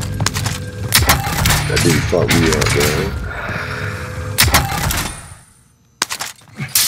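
A gun clicks and rattles as it is handled.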